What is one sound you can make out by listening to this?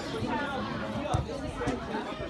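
A foot kicks a football with a thud.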